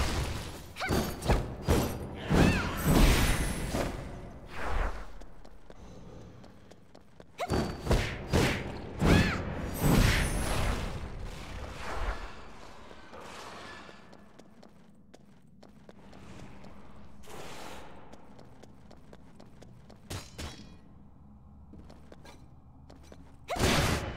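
Magic blasts burst with sharp whooshes.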